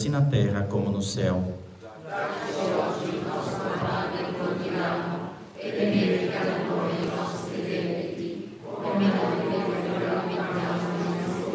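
A woman speaks calmly and steadily to an audience in a large room with a slight echo.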